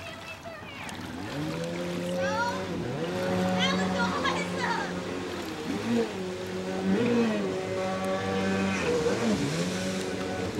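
A motorboat engine hums nearby.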